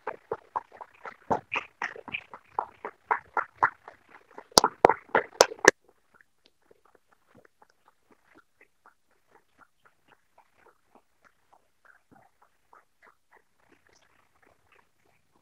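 A man claps his hands steadily, nearby at first and then more faintly.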